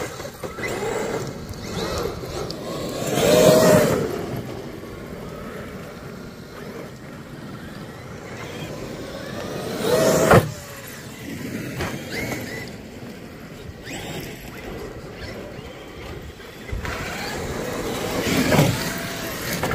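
A toy car's electric motor whines loudly, revving up and down as the car speeds past.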